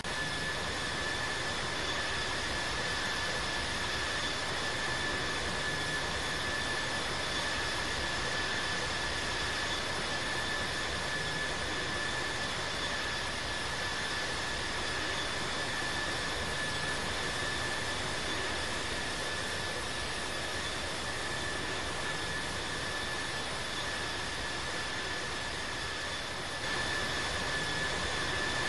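Jet engines roar and whine steadily.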